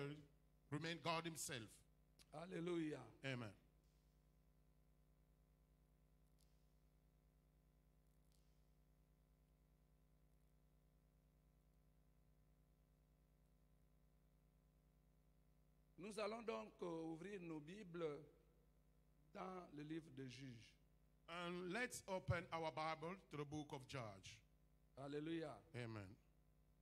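An elderly man speaks slowly and firmly into a microphone, heard through loudspeakers.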